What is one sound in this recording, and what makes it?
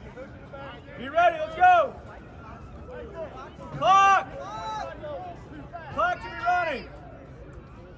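A woman close by shouts loudly in bursts.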